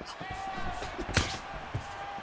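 A punch lands with a sharp thud.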